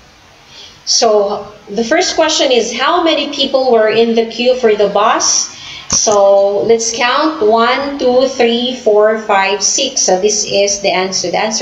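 A woman speaks with animation through an online call microphone.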